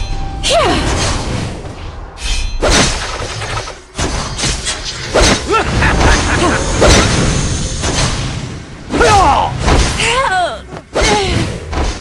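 Game attacks clash and bang in quick bursts.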